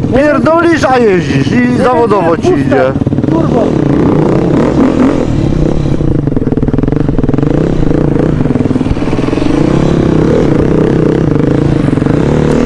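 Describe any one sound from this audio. A dirt bike engine revs hard up and down close by.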